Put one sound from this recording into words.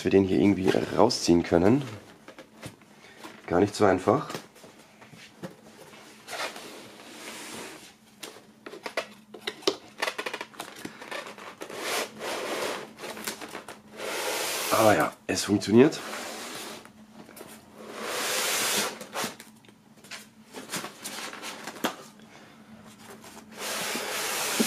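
Cardboard rustles and scrapes as a box is handled and opened.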